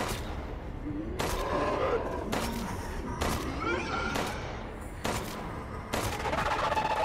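Gunshots ring out one after another.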